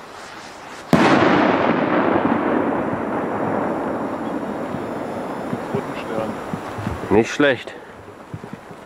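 A firework explodes overhead with a loud bang, and the boom rolls away and slowly fades.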